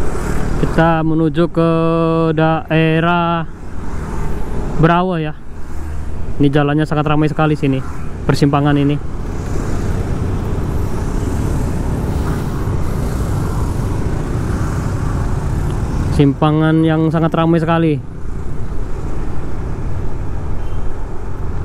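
A scooter engine hums steadily close by.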